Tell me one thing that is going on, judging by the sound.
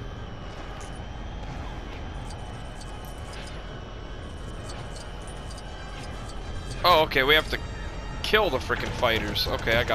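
A spaceship engine hums steadily.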